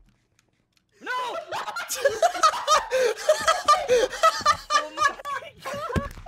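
A young man screams and shouts excitedly into a close microphone.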